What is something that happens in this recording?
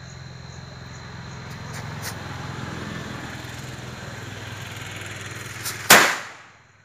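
A firework fizzes and hisses as it sprays sparks.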